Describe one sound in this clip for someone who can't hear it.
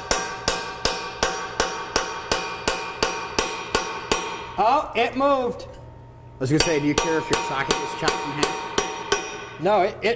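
A hammer strikes metal in a steady rhythm, each blow ringing out.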